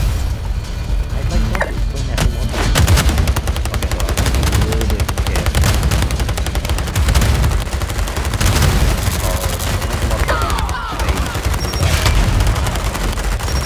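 Game explosions crash and rumble.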